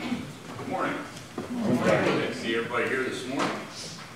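A second man speaks into a microphone in an echoing hall.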